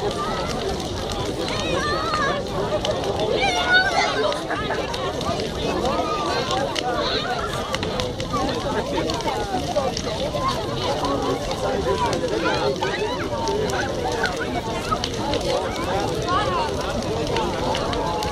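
A large bonfire roars steadily outdoors.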